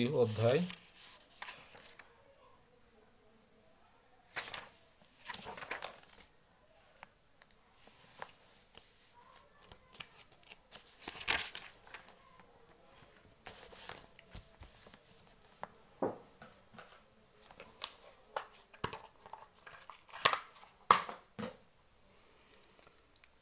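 Hands rustle and tap while handling small objects close by.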